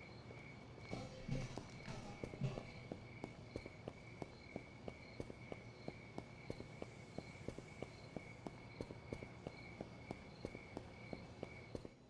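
Footsteps tread steadily on a hard surface.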